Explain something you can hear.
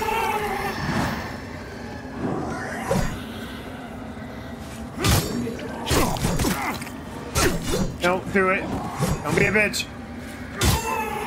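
Sword blows strike with sharp metallic clangs.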